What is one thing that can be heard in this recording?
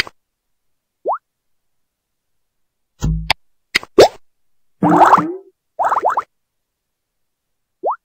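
A game shot launches with a rising whoosh.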